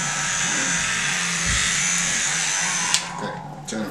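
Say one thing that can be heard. Electric hair clippers buzz steadily up close.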